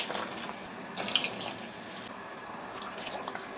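Food slides from a bowl into water with a splash.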